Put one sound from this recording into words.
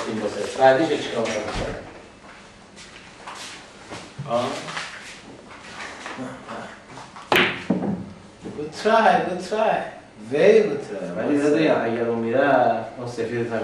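A middle-aged man talks nearby.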